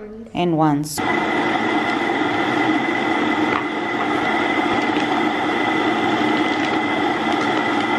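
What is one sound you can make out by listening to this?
An electric coffee grinder whirs steadily.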